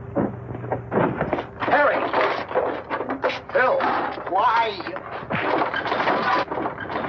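Men scuffle in a fistfight, with thuds of blows and bodies.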